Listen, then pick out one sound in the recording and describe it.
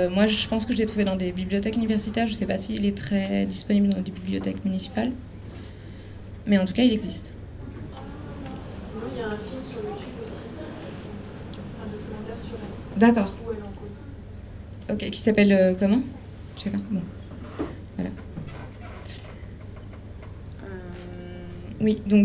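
A young person speaks calmly into a handheld microphone, heard through a loudspeaker.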